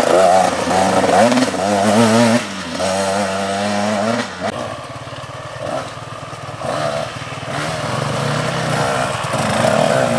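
A dirt bike engine revs hard, fades into the distance, then grows louder again.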